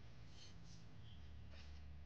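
Flour pours into a bowl.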